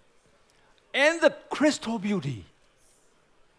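A man speaks with animation through a loudspeaker in a large hall.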